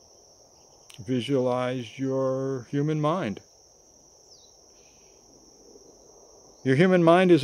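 An elderly man speaks calmly, close to the microphone.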